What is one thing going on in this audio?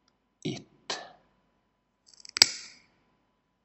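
Wire cutters snip through thin metal wire.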